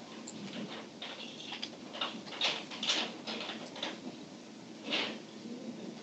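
Wood blocks crack under quick repeated hits.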